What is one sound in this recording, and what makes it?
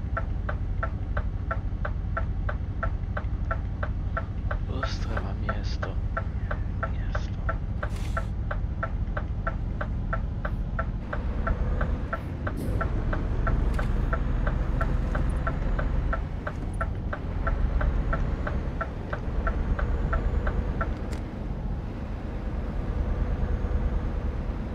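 A diesel truck engine drones while cruising on a highway.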